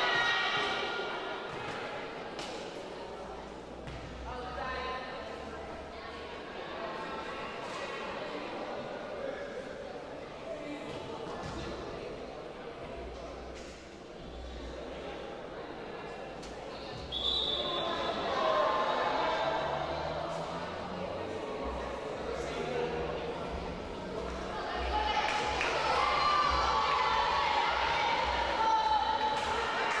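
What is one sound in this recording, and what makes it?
Players and spectators chatter and call out in a large echoing hall.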